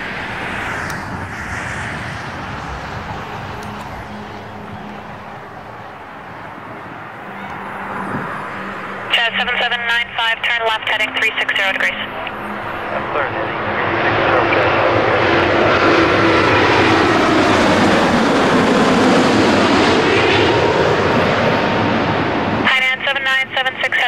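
A jet airliner roars overhead as it comes in low and passes, its engine noise swelling to a loud rushing roar before fading.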